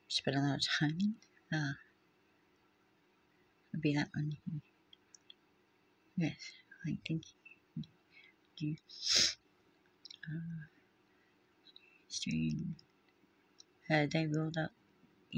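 An older woman speaks calmly and close to a microphone, with pauses.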